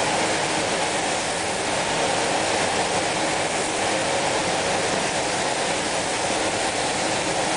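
A spray gun hisses steadily as paint is sprayed.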